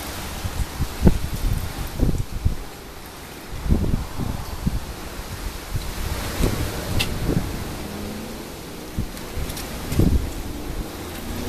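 Metal clanks as a grill door opens and shuts.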